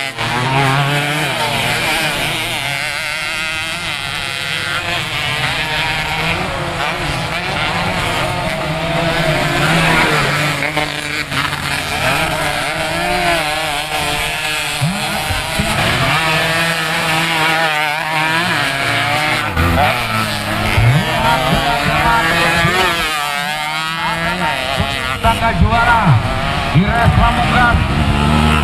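Motorcycle engines rev and whine on a dirt track.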